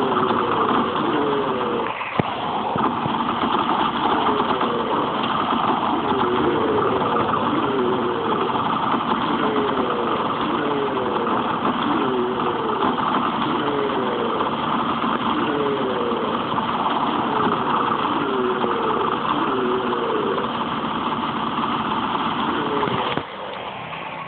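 A rapid-fire gun shoots in long, continuous bursts.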